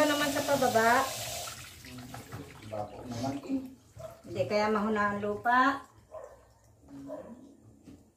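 Water splashes in a metal basin as hands wash.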